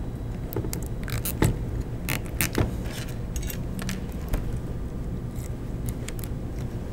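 Plastic parts click and rattle as fingers handle them.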